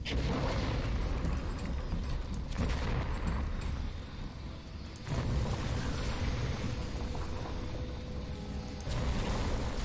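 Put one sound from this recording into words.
Fire bursts from a hand with a whooshing blast.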